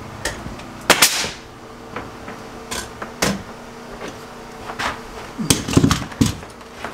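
A nail gun fires with sharp bangs.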